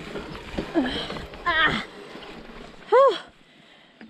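A bicycle crashes to the ground with a thud.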